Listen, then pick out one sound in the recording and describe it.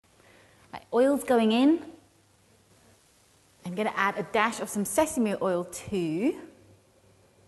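A young woman speaks brightly and clearly, close to a microphone.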